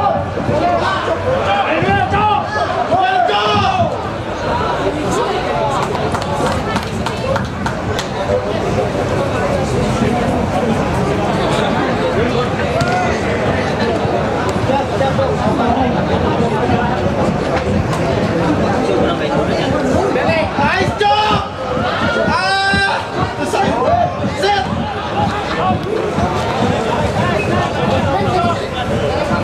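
Young men shout and call out across an outdoor pitch.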